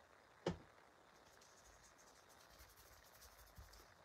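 A paintbrush taps and scratches on paper.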